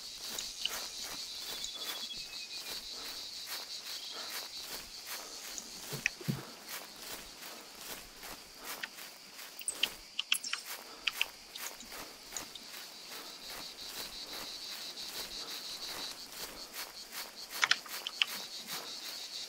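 Footsteps rustle through dry grass at a steady walking pace.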